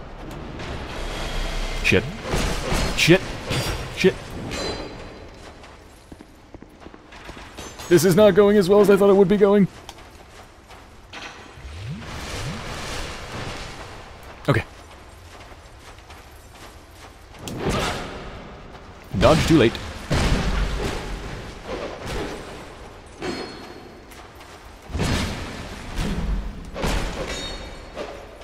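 Metal blades clash and strike in a fight.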